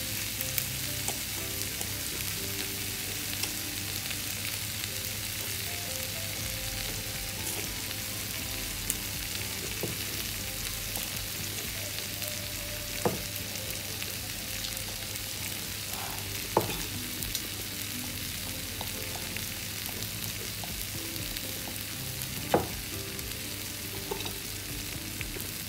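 Water simmers and bubbles steadily in a pot.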